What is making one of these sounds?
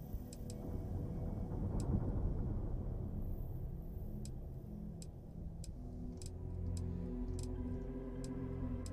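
Short soft clicks sound as menu items are switched, one after another.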